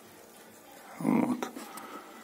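Water sloshes briefly.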